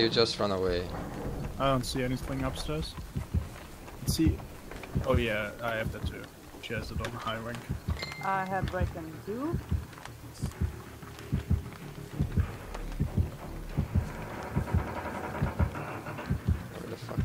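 Quick footsteps run over dry ground.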